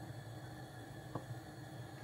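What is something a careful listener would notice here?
Oil glugs softly as it pours from a bottle into a pan.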